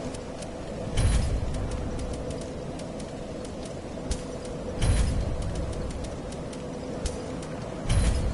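Menu selections click and chime.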